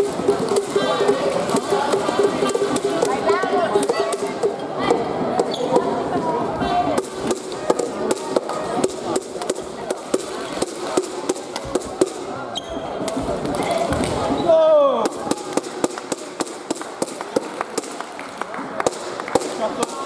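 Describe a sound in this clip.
Many voices chatter and call out in a large echoing hall.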